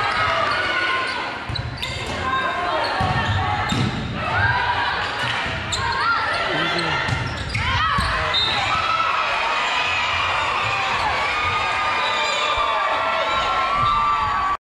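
Young women shout and cheer.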